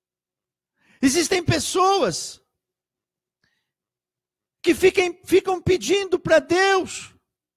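A middle-aged man speaks calmly and closely into a microphone, in short phrases with pauses.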